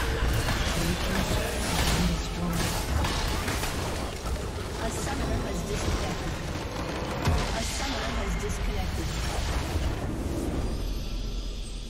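Game spells crackle and boom in a busy fight.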